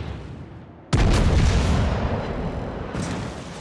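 Big guns fire with a deep, booming roar that rolls away.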